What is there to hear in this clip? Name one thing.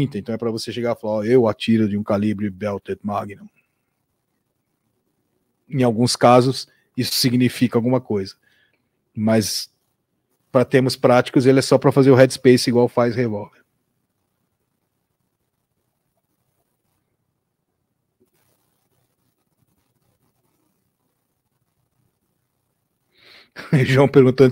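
A man talks with animation, close to a microphone, with pauses.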